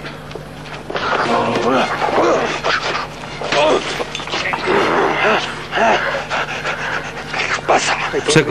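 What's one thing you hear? Two men scuffle and grapple.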